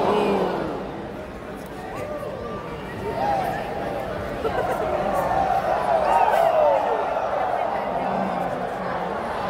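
A large crowd cheers and shouts in a large echoing indoor arena.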